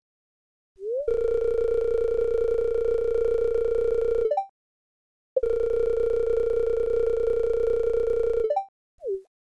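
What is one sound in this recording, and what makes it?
A steady electronic buzzing tone plays.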